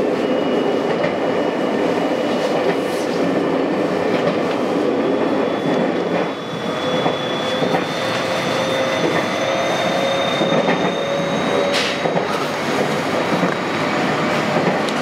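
Train wheels squeal on a curve in the track.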